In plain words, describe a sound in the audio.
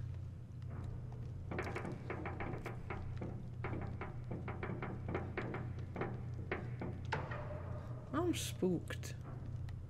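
Footsteps crunch on gravel and concrete.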